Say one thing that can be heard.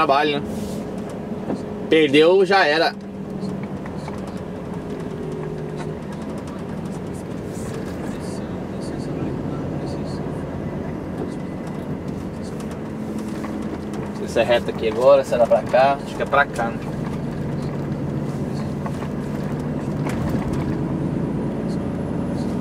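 A bus engine hums steadily from inside the cab.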